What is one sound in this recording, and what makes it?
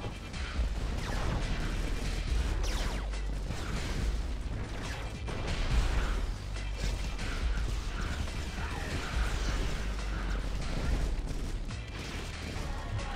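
Explosions and gunfire rumble in a battle.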